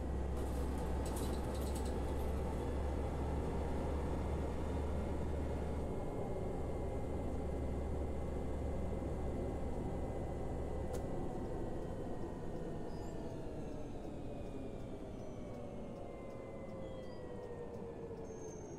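A bus engine hums steadily and slowly winds down as the bus slows to a stop.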